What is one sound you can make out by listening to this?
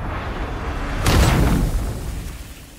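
A heavy blow lands with a loud crackling burst.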